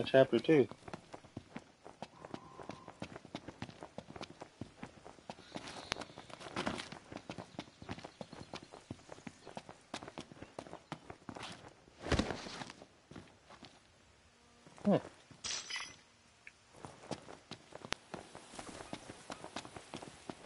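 Footsteps run quickly over dirt and rock.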